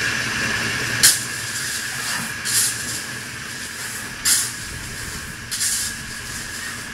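Metal clanks sharply from construction work nearby.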